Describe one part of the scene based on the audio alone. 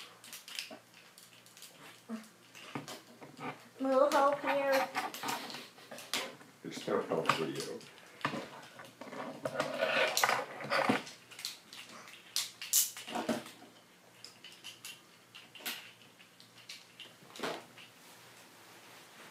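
Plastic toy pieces click and snap together.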